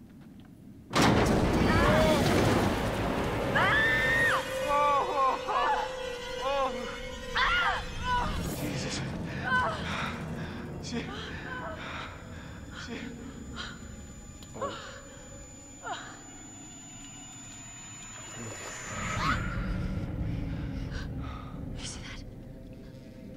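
Men and women shout and talk in tense voices.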